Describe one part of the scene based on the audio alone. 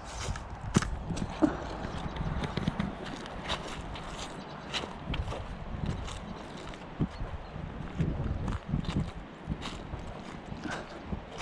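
Footsteps crunch on dry grass and leaves.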